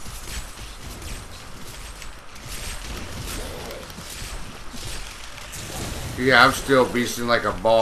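Magic blasts crackle and boom in quick bursts.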